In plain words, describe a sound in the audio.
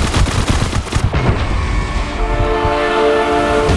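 Music from a game plays at the end.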